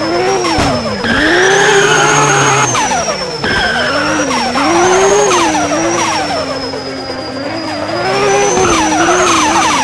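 Tyres squeal while a car drifts.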